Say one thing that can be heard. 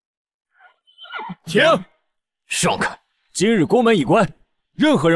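A young man speaks calmly and firmly.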